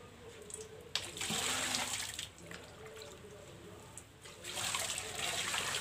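Water pours and splashes onto a concrete floor.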